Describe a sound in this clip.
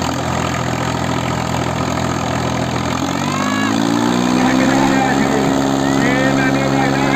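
Two tractor engines roar loudly under heavy strain.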